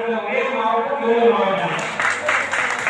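An elderly man speaks into a handheld microphone over a loudspeaker.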